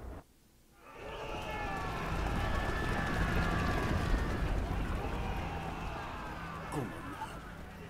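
A crowd of men yells as they charge.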